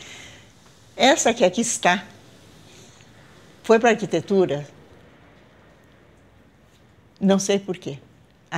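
An elderly woman speaks calmly and clearly close by.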